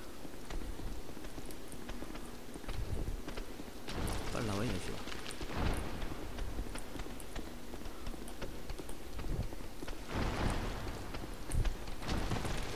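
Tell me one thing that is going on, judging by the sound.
Armoured footsteps clatter on a stone floor.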